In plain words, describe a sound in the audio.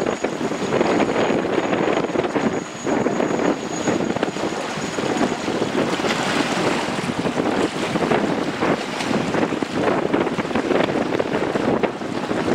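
Choppy water laps and splashes.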